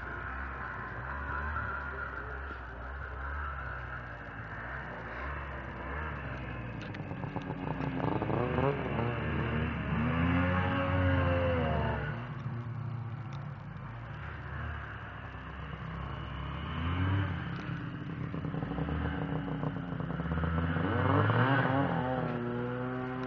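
A snowmobile engine runs close by, revving up and down as it rides over snow.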